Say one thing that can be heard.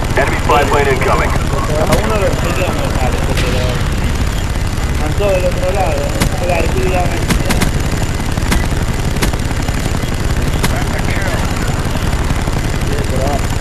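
A helicopter's rotor drones and thumps steadily.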